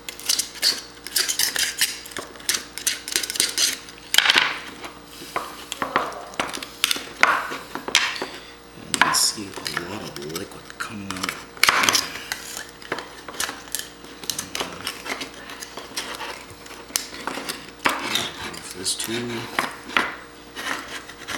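A knife scrapes and cuts against a hard shell on a cutting board.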